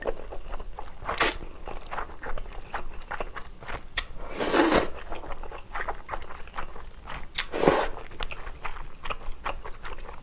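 A young woman chews food wetly, close to the microphone.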